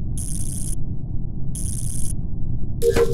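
Electric wires buzz in short bursts.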